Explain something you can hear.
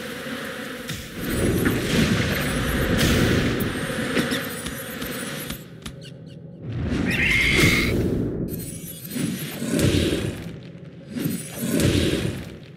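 Magic blasts burst and crackle.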